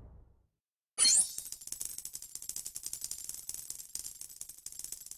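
Coins jingle rapidly as a score tallies up.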